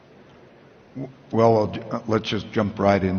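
A man speaks calmly through a microphone on a stage.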